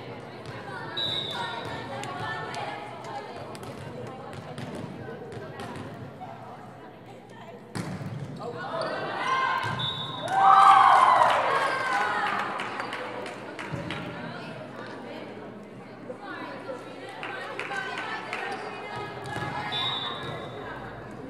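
A referee's whistle blows short, sharp blasts.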